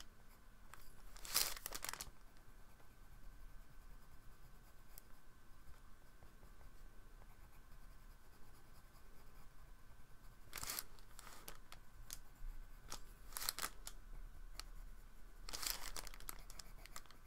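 A drawing board slides and scrapes across a table.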